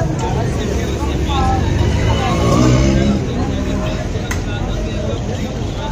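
Meat sizzles and coals crackle on a grill.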